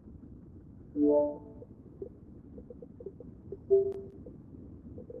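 A soft electronic chime sounds as a menu opens.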